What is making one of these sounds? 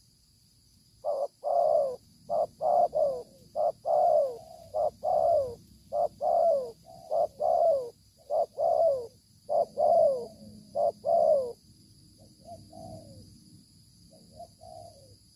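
A dove coos in loud, repeated falling calls close by.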